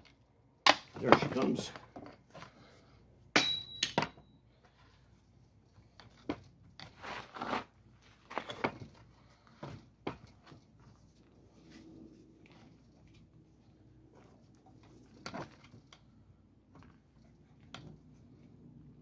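A metal window frame clanks and rattles as it is handled.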